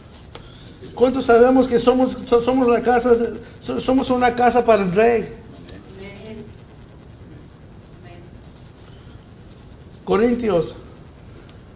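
A middle-aged man speaks into a microphone, pausing between phrases.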